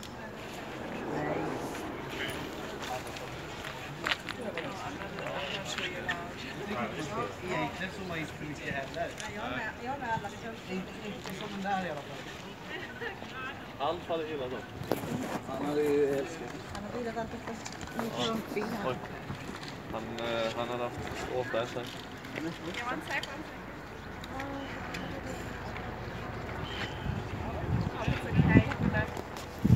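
Men and women chatter and talk nearby outdoors.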